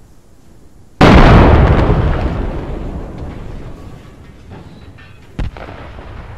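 A large explosion booms and rumbles away.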